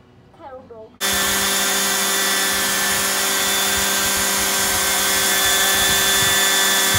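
A shop vacuum hums steadily.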